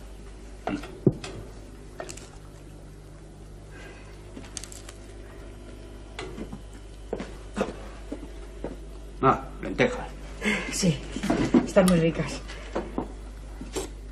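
Dishes and cutlery clink.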